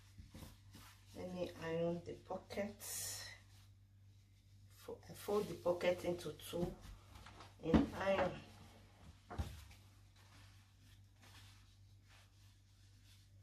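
Fabric rustles as hands smooth and fold it.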